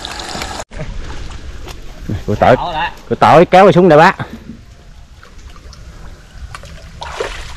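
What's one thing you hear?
Water splashes as a man wades and works in it.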